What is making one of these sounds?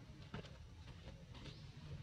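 A monkey scratches its fur.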